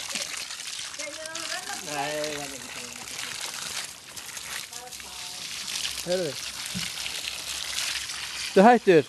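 A small child babbles and squeals close by.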